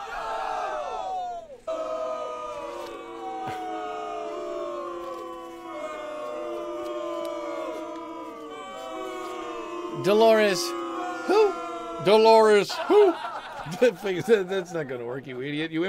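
A man plays a harmonica close to a microphone.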